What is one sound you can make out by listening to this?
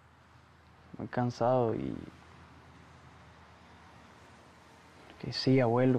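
A young man speaks softly and hesitantly.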